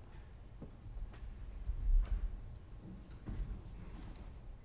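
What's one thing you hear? A heavy body thumps down onto a wooden stage floor.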